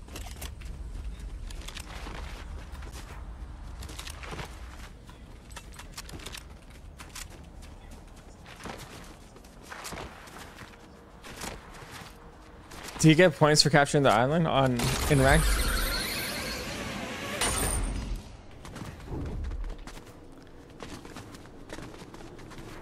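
Footsteps patter quickly on grass and stone.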